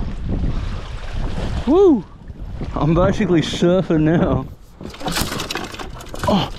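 Water laps against a kayak.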